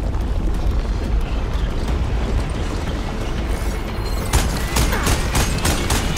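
Flames roar loudly with a deep rumble.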